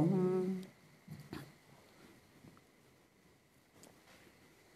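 Cloth robes rustle softly as people bow down to the floor.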